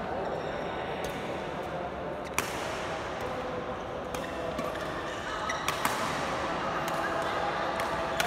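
Rackets strike shuttlecocks with sharp pops in an echoing hall.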